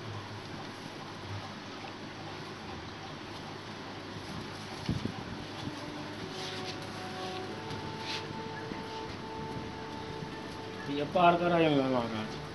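Rope rustles and scrapes as it is pulled and knotted.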